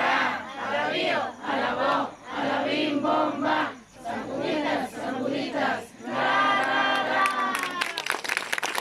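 A crowd of men and women sings together loudly nearby.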